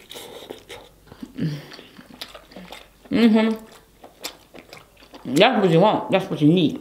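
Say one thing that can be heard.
Food crunches and smacks as a young woman chews close to a microphone.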